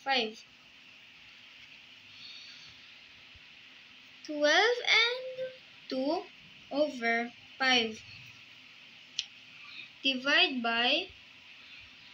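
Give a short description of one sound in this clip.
A child speaks close by in short bursts.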